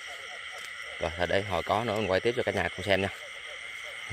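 A frog croaks loudly close by.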